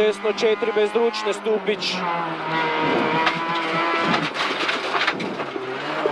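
A car engine revs hard and changes pitch as the car speeds along.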